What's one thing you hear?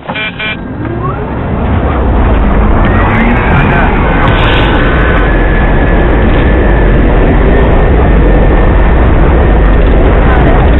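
A jet engine roars loudly and steadily.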